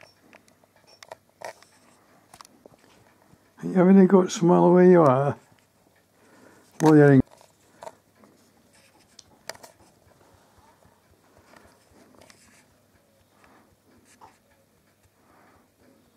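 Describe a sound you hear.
A small hedgehog snuffles and huffs softly.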